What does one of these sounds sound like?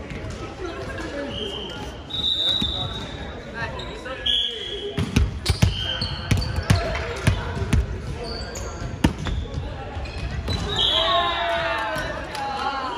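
Young women chatter and call out to each other across the court.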